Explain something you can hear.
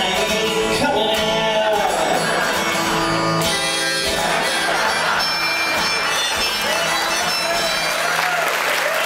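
A harmonica plays a lively tune through loudspeakers.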